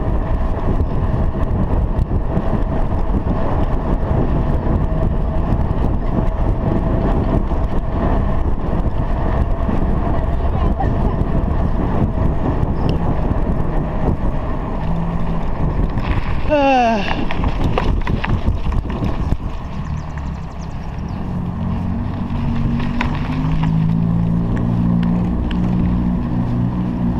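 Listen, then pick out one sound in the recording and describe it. Wind rushes past outdoors while cycling along a road.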